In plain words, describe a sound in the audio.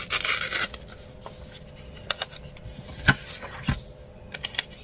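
Paper sheets slide and rustle on a table.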